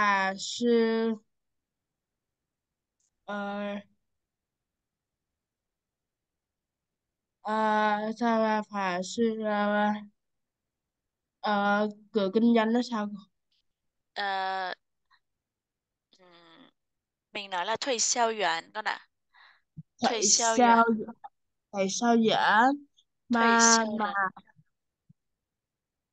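A woman speaks calmly and clearly, heard through an online call.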